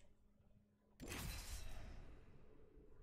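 A loud whoosh sweeps in.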